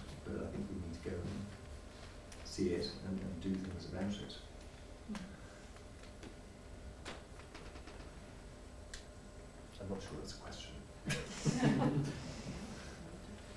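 A woman speaks calmly into a microphone in a room with some echo.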